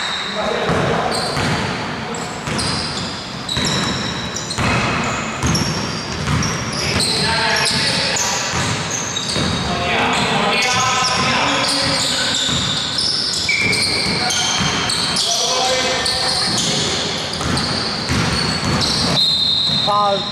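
A basketball bounces with dull thuds on the floor.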